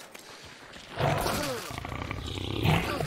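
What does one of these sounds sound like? A beast snarls and growls close by.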